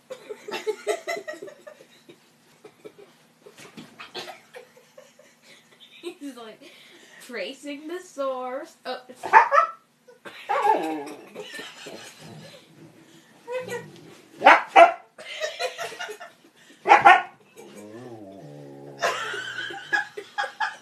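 A boy laughs and talks with animation close by.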